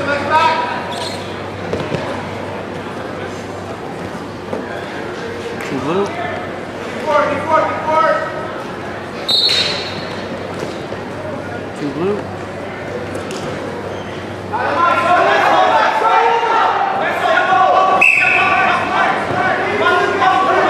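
Wrestlers' bodies thump and scuff on a mat.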